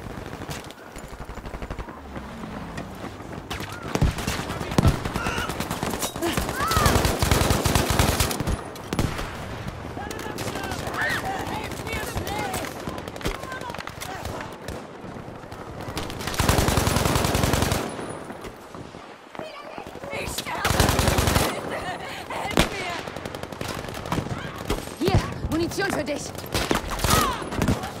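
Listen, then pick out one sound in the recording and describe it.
A submachine gun fires rapid bursts up close.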